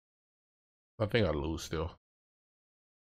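A man speaks briefly and casually into a close microphone.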